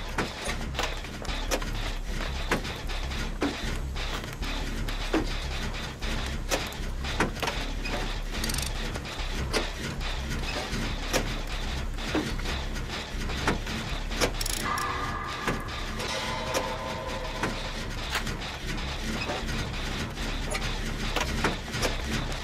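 Metal parts clink and rattle as an engine is repaired by hand.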